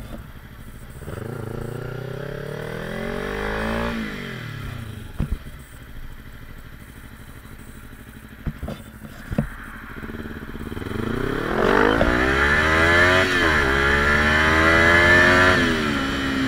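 A motorcycle engine revs up, rising in pitch as it speeds up.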